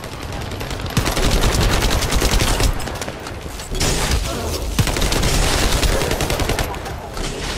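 Rapid gunfire and energy blasts crackle and boom.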